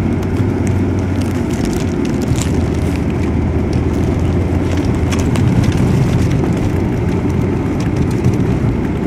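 Car tyres roll over snow.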